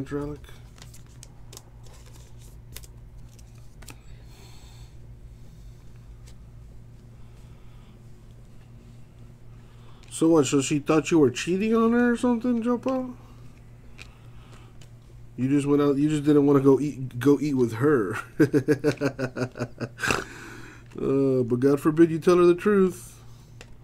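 Trading cards rustle and click as they are flipped through by hand.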